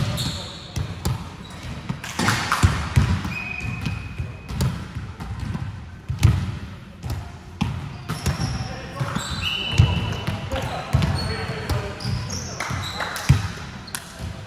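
A volleyball is hit with sharp slaps that echo in a large hall.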